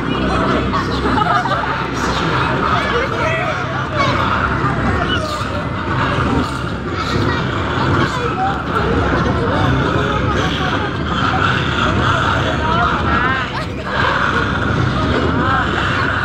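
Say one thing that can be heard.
A crowd of children and adults chatter loudly nearby.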